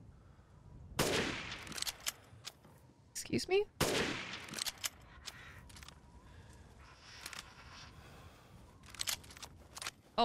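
Rifle shots crack loudly, echoing.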